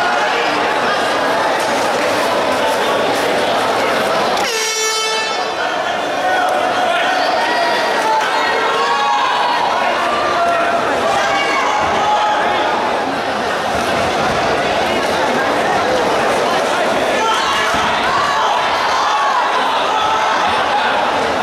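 A large crowd shouts and cheers.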